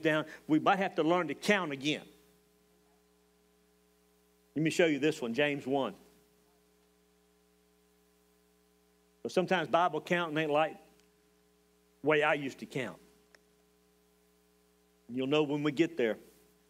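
A middle-aged man speaks calmly into a headset microphone in short phrases with pauses.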